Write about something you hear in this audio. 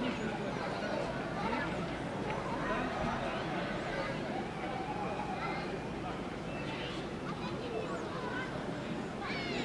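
A crowd of people chatter at a distance outdoors.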